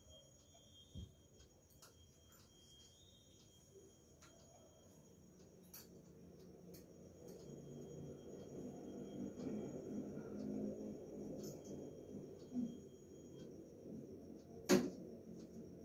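Metal dishes clink softly as they are set down.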